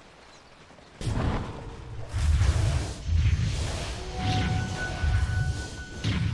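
Fiery spell blasts boom and crackle in a video game battle.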